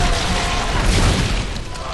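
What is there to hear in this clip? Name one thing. A weapon fires in short bursts.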